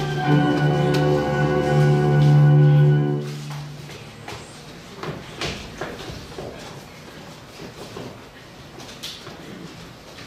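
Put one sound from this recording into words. Feet shuffle and thump on a stage floor.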